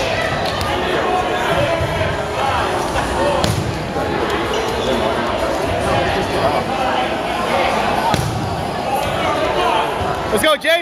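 A crowd of young people chatters and shouts loudly in a large echoing hall.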